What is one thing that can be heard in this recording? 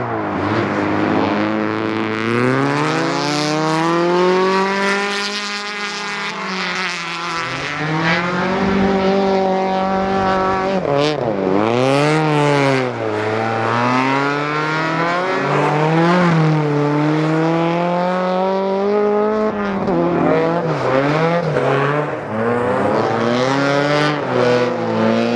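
A rally car engine revs hard and roars, rising and falling in pitch.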